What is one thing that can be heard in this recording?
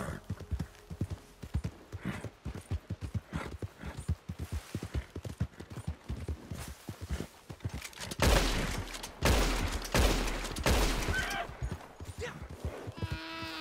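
A horse's hooves thud steadily on soft ground.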